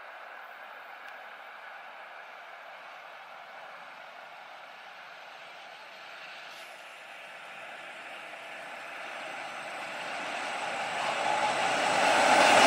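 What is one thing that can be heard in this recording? An electric train rumbles along the rails toward the listener, growing steadily louder.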